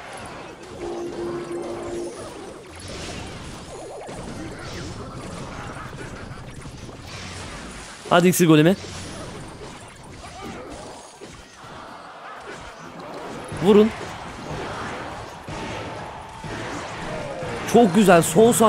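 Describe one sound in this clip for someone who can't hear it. Video game battle sounds clash and thump.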